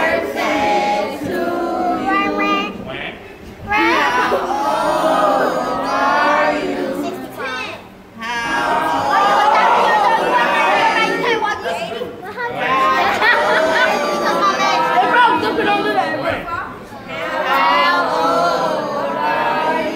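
A group of children and adults sing together close by.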